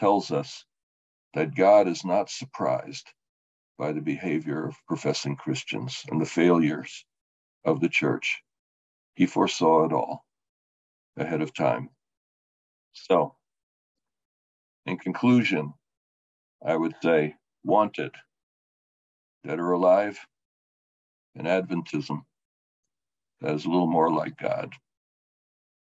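An elderly man speaks calmly through an online call microphone, in short phrases with pauses.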